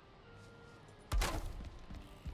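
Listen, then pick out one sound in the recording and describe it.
A wooden post thuds into place.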